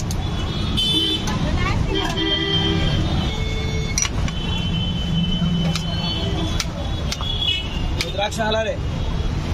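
A spoon scrapes against a metal pot.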